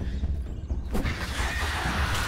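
Thick slime bursts with a wet splatter.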